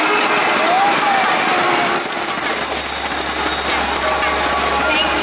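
A large crowd screams and cheers loudly.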